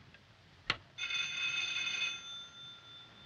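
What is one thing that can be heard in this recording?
A telephone rings briefly.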